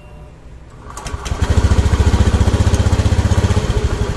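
A scooter engine starts and runs, roaring steadily.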